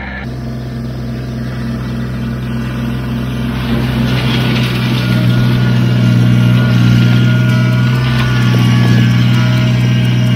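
A tractor engine rumbles steadily and grows louder as it comes closer.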